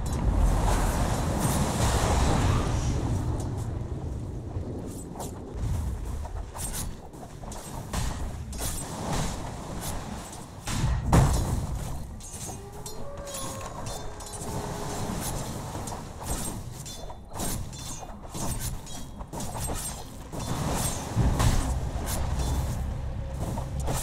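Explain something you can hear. Game weapons clash and thud in rapid hits.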